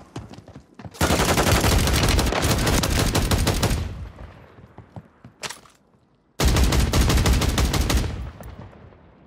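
A submachine gun fires rapid automatic bursts in a video game.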